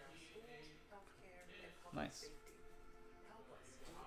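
Trading cards rustle and slide in a man's hands.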